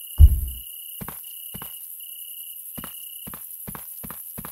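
Footsteps tread on hard ground at a steady pace.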